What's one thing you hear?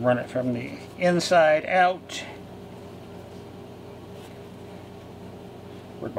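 Paper rustles softly as it is folded by hand.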